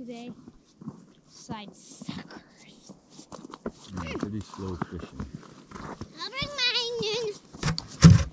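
A child calls out in a high voice nearby.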